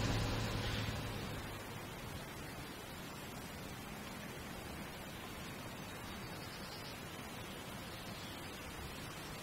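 A large bus engine idles with a steady low rumble.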